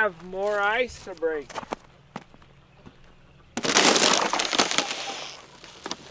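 Footsteps crunch on snow and wood chips.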